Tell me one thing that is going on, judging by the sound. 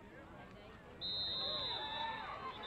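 A referee's whistle blows sharply.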